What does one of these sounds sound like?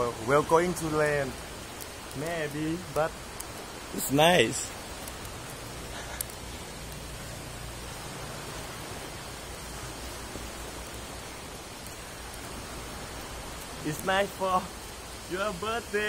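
Sparklers fizz and crackle.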